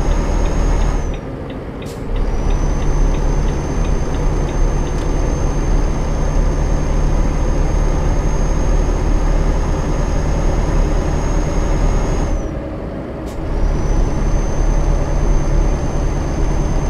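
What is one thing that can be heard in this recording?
A truck engine drones steadily, briefly dropping off twice.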